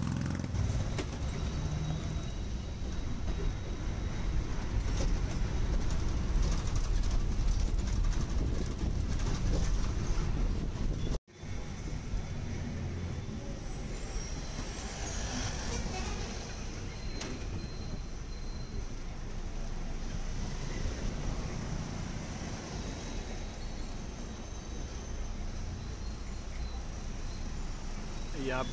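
A bus engine rumbles steadily while riding along.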